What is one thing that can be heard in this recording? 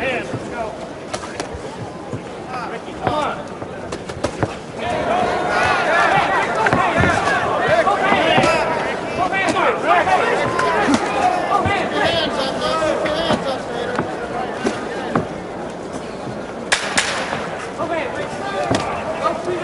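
Boxing gloves thud against bodies in quick blows.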